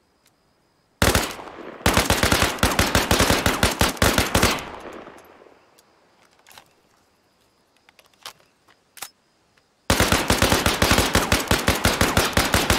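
A rifle fires rapid bursts of automatic fire.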